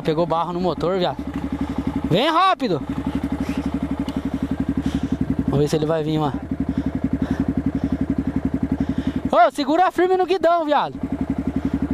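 A single-cylinder four-stroke trail motorcycle revs up in short bursts.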